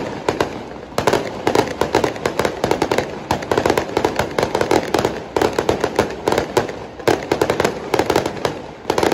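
Fireworks crackle and pop in rapid bursts outdoors.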